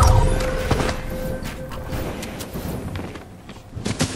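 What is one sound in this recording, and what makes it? Wooden walls and ramps thud and clatter as they are quickly built.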